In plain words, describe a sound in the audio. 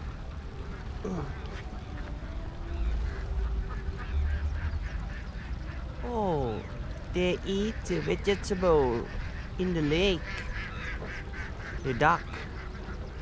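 Water birds call out across a lake.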